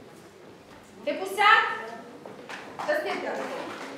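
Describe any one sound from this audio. A woman speaks through a microphone, reading out in an echoing hall.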